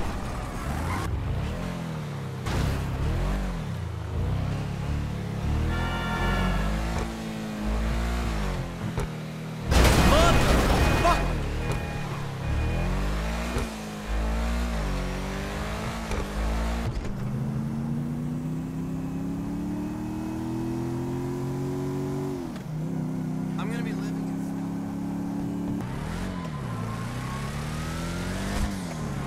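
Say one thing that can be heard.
A car engine revs up and down as it speeds along.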